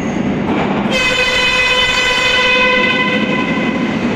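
A subway train's motors whine loudly.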